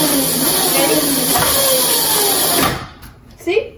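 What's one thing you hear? An electric motor whines and revs loudly.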